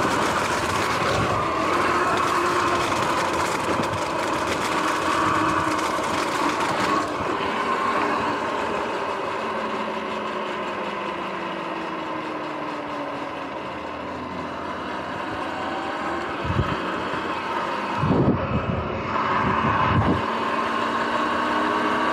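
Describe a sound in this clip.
Bike tyres hum and crunch over leaves and pavement.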